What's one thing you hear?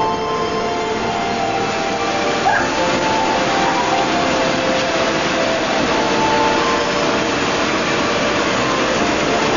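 Water churns and rushes loudly in a boat's wake.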